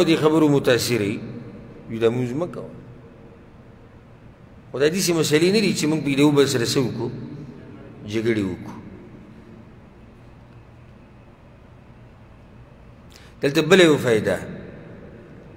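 A man speaks in bursts through a microphone, with pauses, in a room with some echo.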